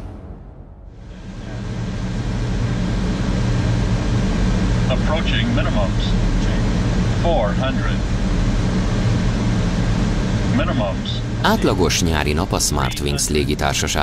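An aircraft's engines and rushing air drone steadily.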